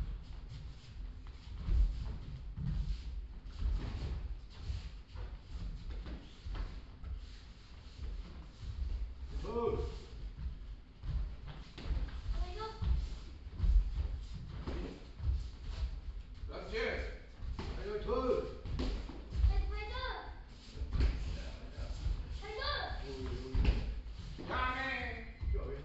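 Bare feet thump and shuffle on a padded mat.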